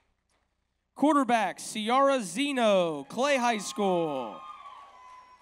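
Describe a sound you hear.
A man announces loudly over a loudspeaker in a large echoing hall.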